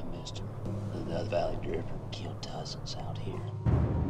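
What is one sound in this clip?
A young man speaks close by with animation.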